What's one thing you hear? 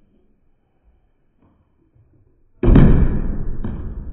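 A bottle lands with a thud on a table.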